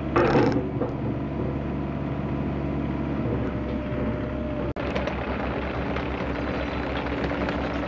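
A diesel excavator engine rumbles steadily close by.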